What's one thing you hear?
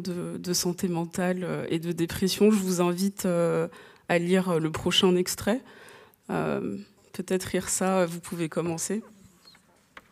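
A woman speaks into a microphone over a hall's loudspeakers, with reverberation.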